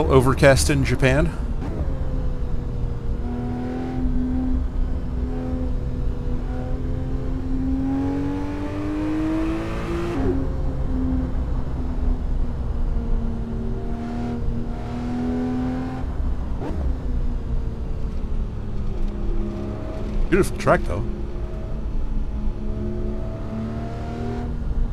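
A car engine hums and revs up and down steadily.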